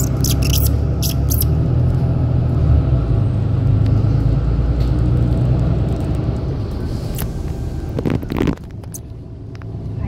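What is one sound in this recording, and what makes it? A vehicle's tyres rumble steadily on a paved road while driving.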